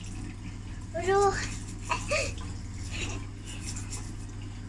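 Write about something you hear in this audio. A young girl speaks and laughs close by.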